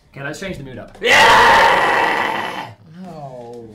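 A young man screams loudly and wildly close by.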